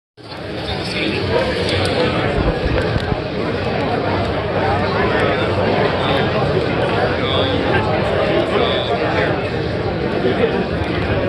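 A crowd of people chatters loudly all around.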